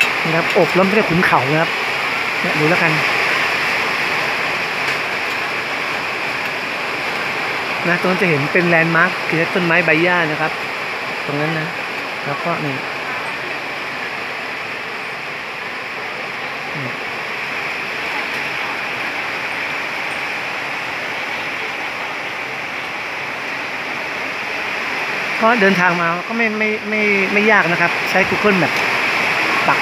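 Rain falls steadily and hisses outdoors.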